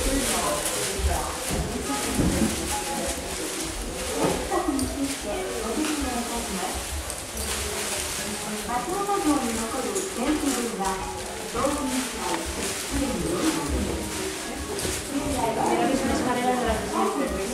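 Several men and women chat nearby in a hushed crowd.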